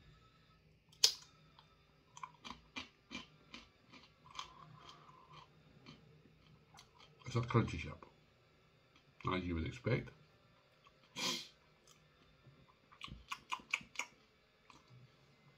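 A crisp crunches loudly as a man chews it.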